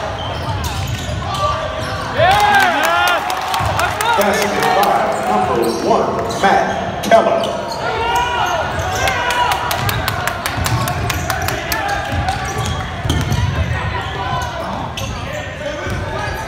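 Men and boys shout and call out across a large echoing gym.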